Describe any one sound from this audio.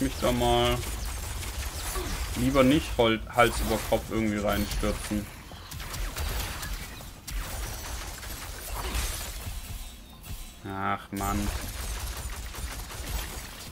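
Blades swish and clang in a fast fight.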